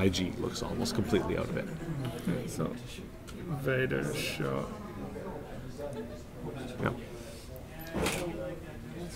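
Small plastic pieces click on a table.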